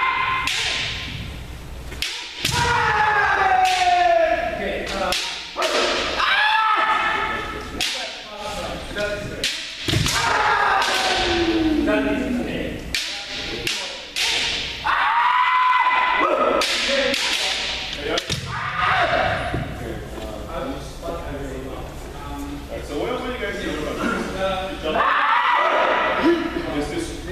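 Several men shout loud, drawn-out cries in a large echoing hall.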